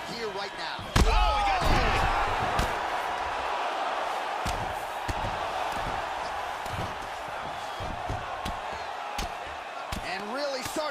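A crowd roars and cheers loudly.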